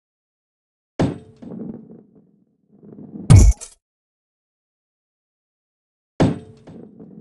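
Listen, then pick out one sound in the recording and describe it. A heavy ball lands on wood with a sharp thud.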